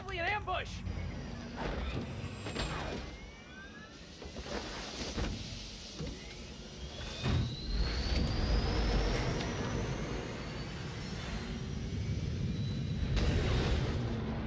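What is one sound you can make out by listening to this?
An aircraft engine hums and roars as it hovers and flies off.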